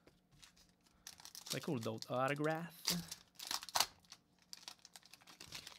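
A foil card pack crinkles and tears.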